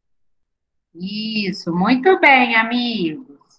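A young woman speaks calmly through an online call microphone.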